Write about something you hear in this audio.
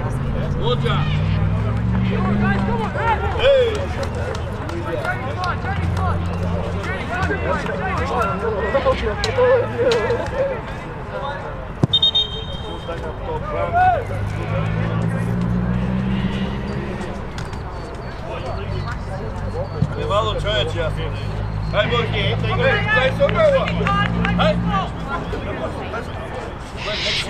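Men shout to each other across an outdoor field in the distance.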